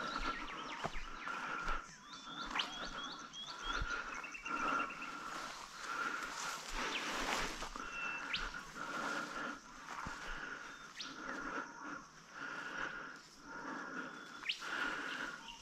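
Footsteps swish steadily through tall dry grass.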